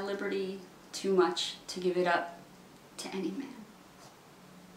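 A woman speaks expressively close to a microphone.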